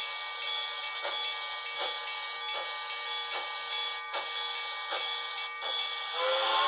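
A small model steam locomotive chuffs in a quick rhythm.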